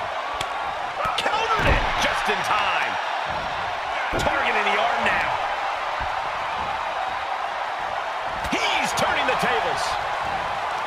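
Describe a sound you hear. Punches thud against a wrestler.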